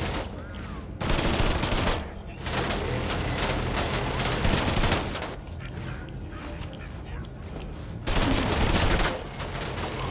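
A gun fires rapid bursts of energy shots.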